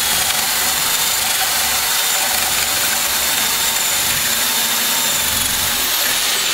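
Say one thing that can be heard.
A power drill whirs steadily as it bores into wood.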